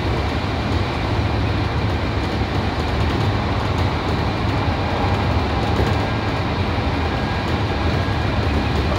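A subway train rumbles steadily through a tunnel.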